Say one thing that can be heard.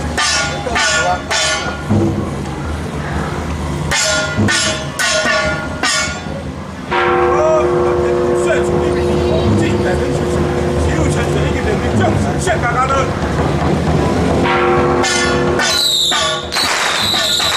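A small hand gong is struck in quick, ringing beats.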